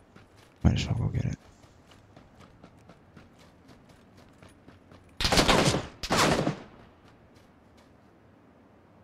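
Footsteps crunch quickly through grass.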